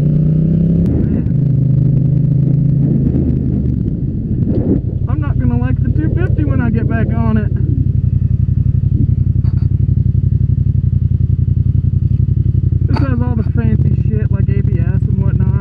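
A motorcycle engine rumbles steadily close by, shifting pitch as the rider changes speed.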